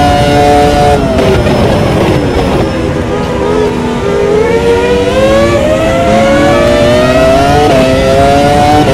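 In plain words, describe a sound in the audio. A racing car engine drops sharply in pitch while braking, then revs back up.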